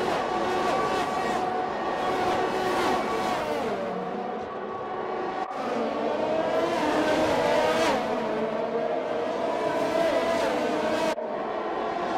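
Racing cars whoosh past close by.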